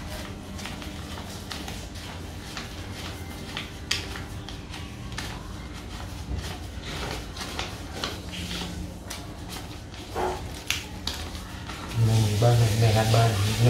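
Paper banknotes rustle and flick as they are counted by hand.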